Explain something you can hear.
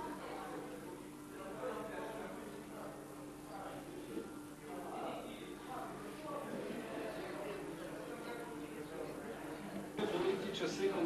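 Several people talk quietly.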